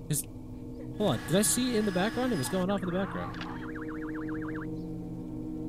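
A video tape whirs and warbles as it rewinds.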